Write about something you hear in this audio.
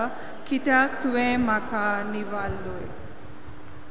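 An elderly woman sings slowly into a microphone.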